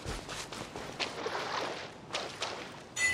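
Footsteps splash through shallow water.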